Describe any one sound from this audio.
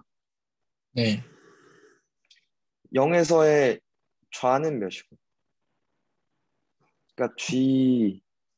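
A young man speaks calmly in short phrases, heard close through a microphone on an online call.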